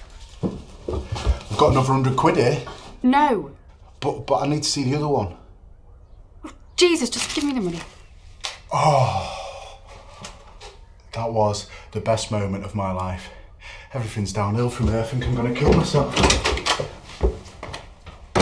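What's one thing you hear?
A young man speaks with animation nearby.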